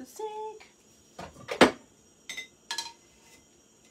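Pots and utensils clatter sharply.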